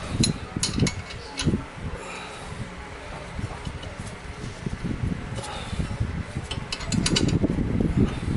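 A wrench clicks against a bolt.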